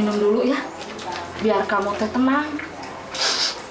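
A young woman speaks tearfully and close by.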